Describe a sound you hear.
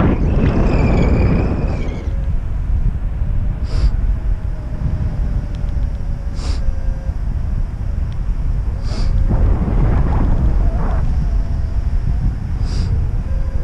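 Wind rushes loudly and buffets past, outdoors high in the air.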